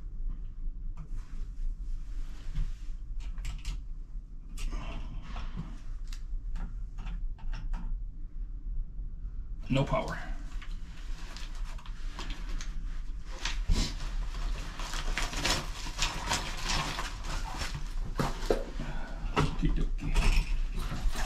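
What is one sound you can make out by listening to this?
Small plastic and metal parts click and rattle.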